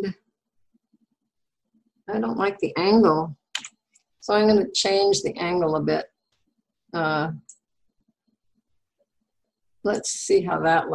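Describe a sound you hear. An older woman talks calmly through a microphone, heard as if on an online call.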